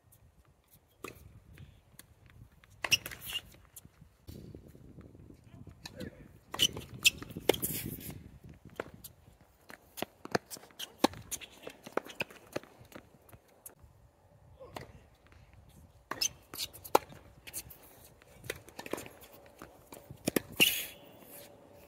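Tennis balls are struck with rackets in a rally, sharp pops echoing outdoors.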